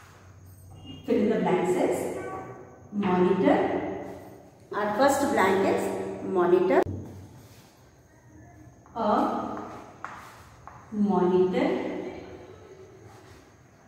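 A woman speaks calmly and clearly, close by, in bursts with pauses.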